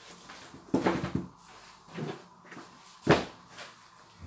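Boots knock softly as they are set down on a hard surface.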